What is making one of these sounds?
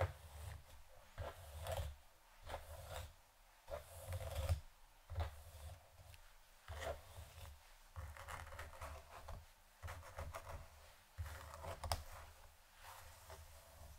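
A comb swishes through long hair in short strokes.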